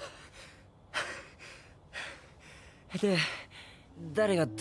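A young man speaks cheerfully.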